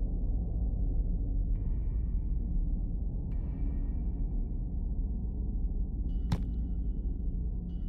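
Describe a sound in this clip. A low, dark rumbling drone plays steadily.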